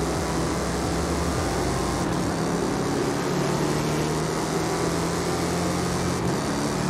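Tyres hum on a smooth track.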